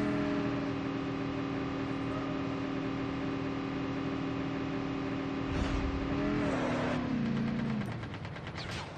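A quad bike engine drones steadily, then winds down.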